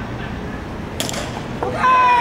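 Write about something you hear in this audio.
A baseball bat cracks against a pitched ball.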